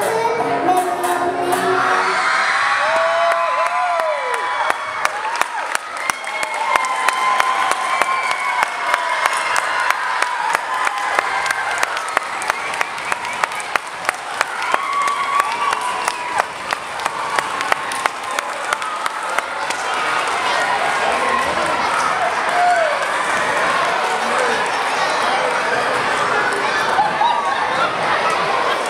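An audience cheers and shouts in a hall.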